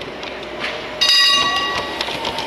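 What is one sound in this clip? A model tram sounds a sharp horn.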